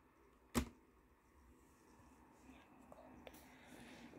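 Fingers tap and rub on a plastic laptop lid.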